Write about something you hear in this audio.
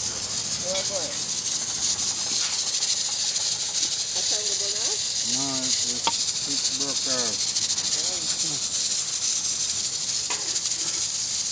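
A stick knocks and scrapes against burning logs.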